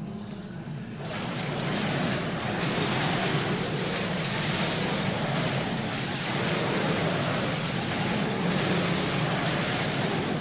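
Spells crackle and blast loudly in a game battle.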